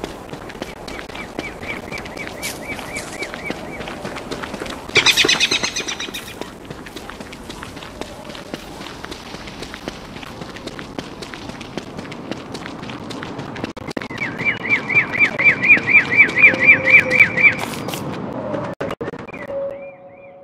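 Quick light footsteps patter steadily over soft ground.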